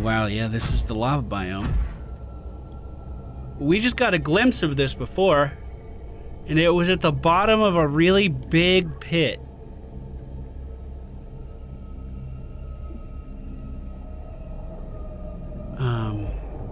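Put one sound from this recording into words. A small underwater craft's motor hums steadily.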